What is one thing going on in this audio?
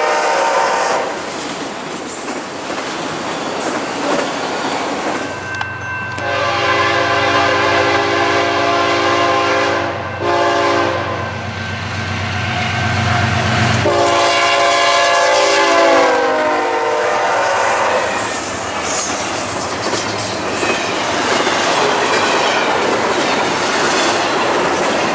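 A freight train rattles and clatters past close by.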